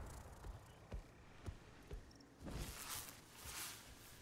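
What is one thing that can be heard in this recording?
Heavy footsteps thud on the ground.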